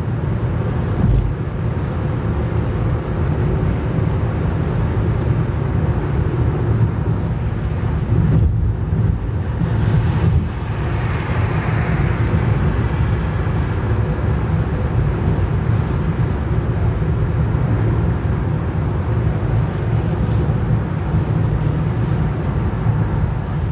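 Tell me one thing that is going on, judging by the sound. Tyres rumble steadily on the road, heard from inside a car.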